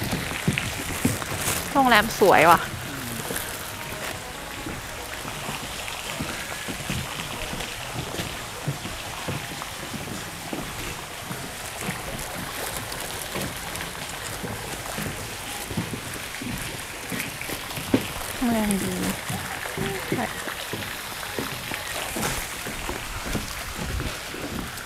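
Footsteps tap steadily on a paved path.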